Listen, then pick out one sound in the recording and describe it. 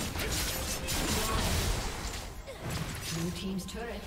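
Spell blasts and hits crackle and whoosh in a fast fight.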